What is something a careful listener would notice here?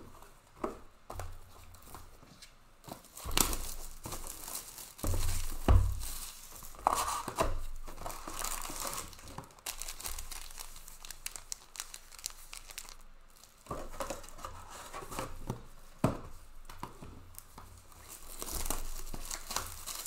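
Plastic foil wrappers rustle and crinkle as hands handle card packs close by.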